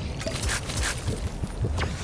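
A game character gulps down a drink.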